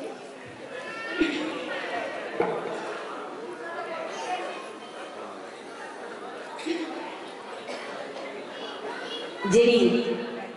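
A young woman talks with animation through a loudspeaker microphone.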